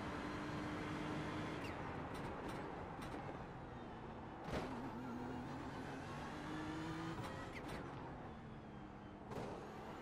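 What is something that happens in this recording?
A racing car engine roars and changes pitch as gears shift.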